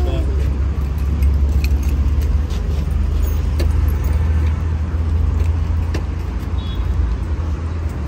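A metal chain leash jingles and rattles.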